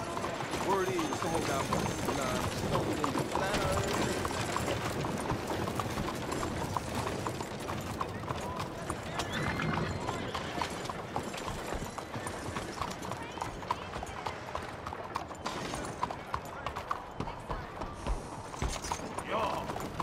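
Carriage wheels rattle over cobblestones nearby.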